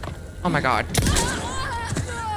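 A gun fires a single loud shot.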